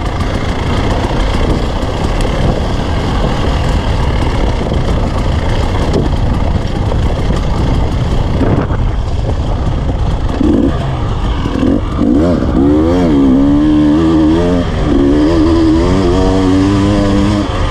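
A dirt bike engine putters at low speed, then revs up and down.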